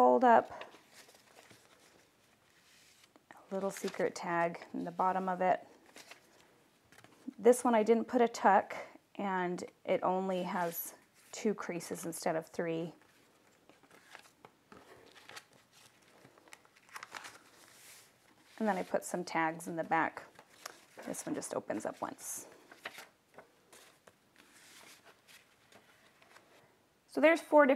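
Paper rustles and flaps as pages are turned and handled.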